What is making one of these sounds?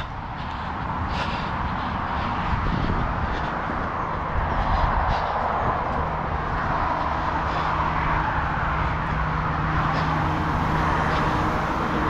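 Wind rushes loudly.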